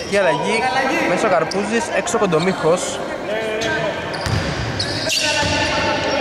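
A basketball bangs off the hoop and thuds on the floor.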